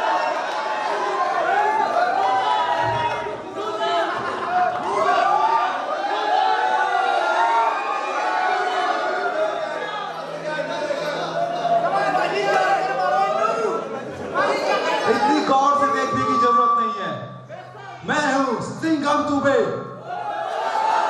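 A man speaks forcefully into a microphone over loudspeakers in a large echoing hall.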